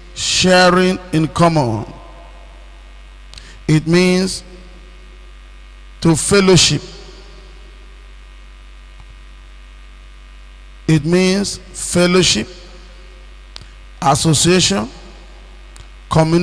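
A man preaches into a microphone in short, emphatic phrases with pauses between them.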